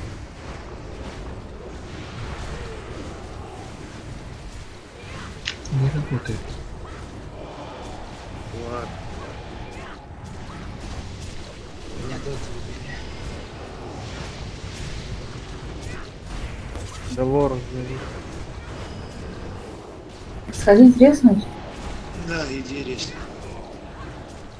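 Spell effects crackle and whoosh during a fantasy battle.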